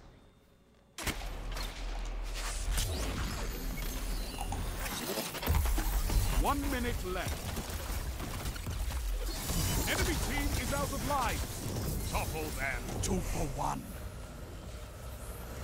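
Gunshots and energy blasts crack rapidly.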